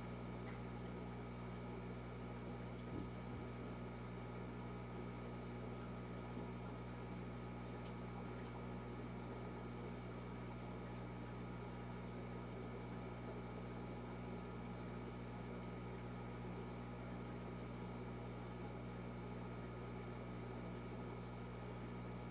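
An aquarium filter hums steadily.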